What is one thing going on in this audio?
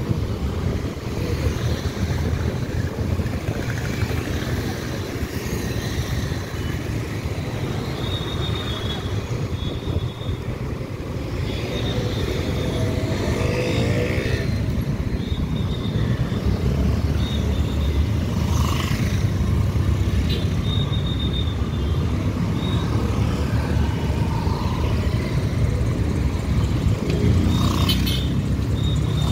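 Motorcycle engines rumble and idle in busy street traffic.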